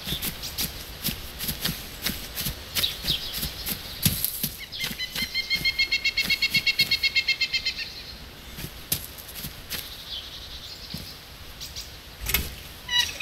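Footsteps crunch over gravel and grass.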